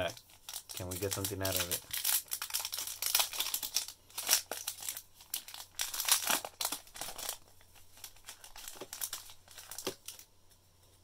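A foil wrapper crinkles and tears as hands open it.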